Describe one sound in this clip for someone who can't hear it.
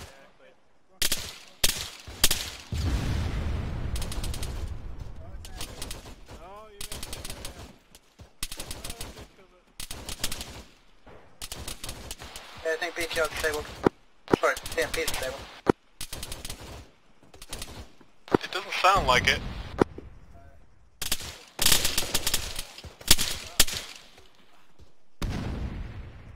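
Rifle shots crack in bursts and echo outdoors.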